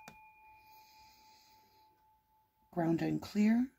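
A singing bowl rings with a steady, fading hum.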